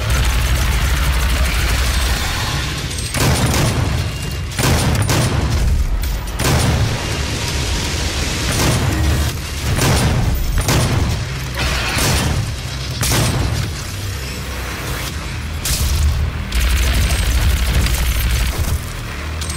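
A plasma rifle fires in rapid bursts.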